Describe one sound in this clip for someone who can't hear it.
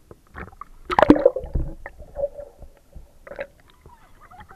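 Bubbles gurgle and rush underwater.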